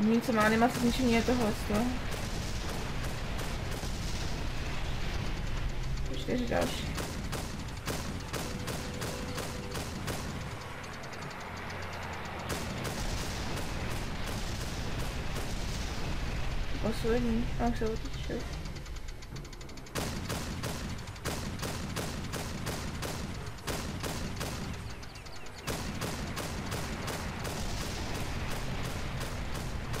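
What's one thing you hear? An anti-aircraft gun fires rapid bursts of shots.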